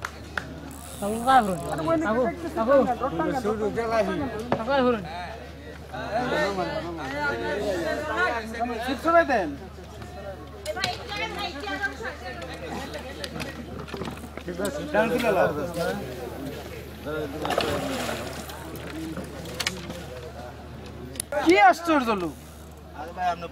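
Men talk and call out to each other nearby, outdoors.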